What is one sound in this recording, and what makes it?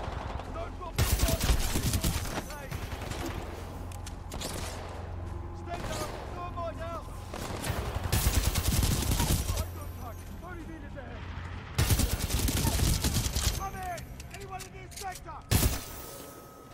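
Rapid gunfire rattles out in loud bursts.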